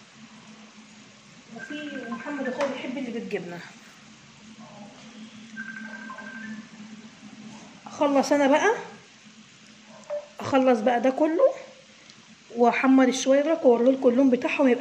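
Pastries sizzle and bubble as they fry in hot oil.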